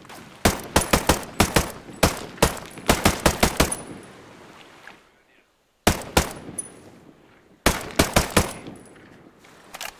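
A rifle fires in rapid bursts of loud shots, close by.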